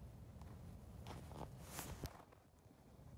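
Boots crunch on snow and ice.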